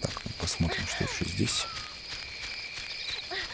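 Soft footsteps rustle through grass.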